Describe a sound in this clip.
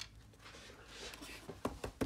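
A plastic toy figure taps against a hard surface.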